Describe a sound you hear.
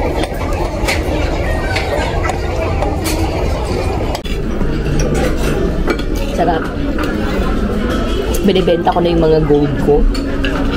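Cutlery clinks against plates and bowls.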